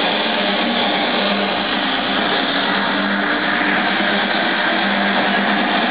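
A crowd cheers and shouts along to the music.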